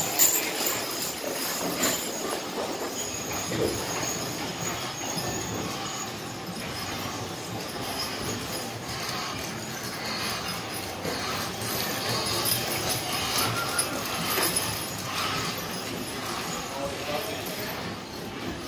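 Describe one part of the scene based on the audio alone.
Harness chains and fittings jingle as horses go by.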